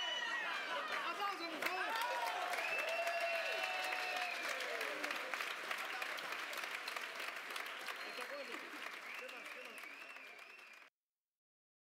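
A large salsa band plays lively music with brass and percussion, slowly fading out.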